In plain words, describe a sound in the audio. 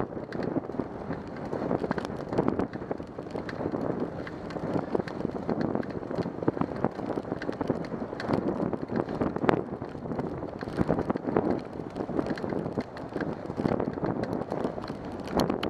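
Wind buffets loudly across the microphone outdoors.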